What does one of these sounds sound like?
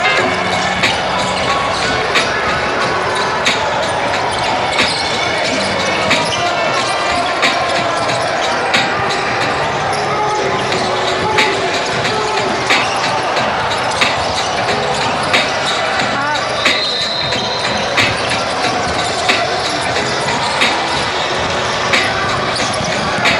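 A crowd of players and onlookers chatters and calls out.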